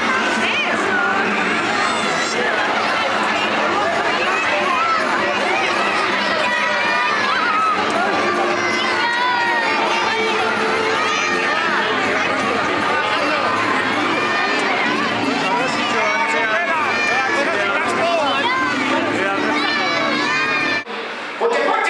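A crowd of children and adults chatters and cheers in a large echoing hall.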